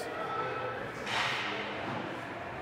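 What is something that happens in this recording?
Ice skates scrape across the ice in a large echoing rink.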